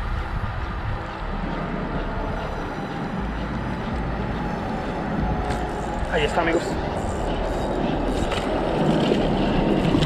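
A fishing reel whirs as it is wound in.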